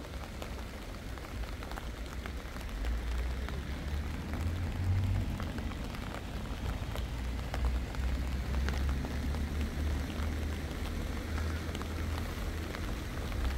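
Light rain patters steadily on the ground and leaves.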